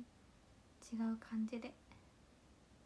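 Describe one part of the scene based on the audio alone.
A young woman speaks briefly and brightly into a nearby microphone.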